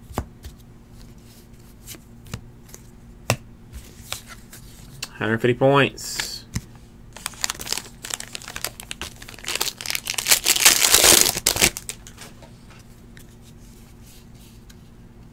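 Trading cards shuffle and flick between hands.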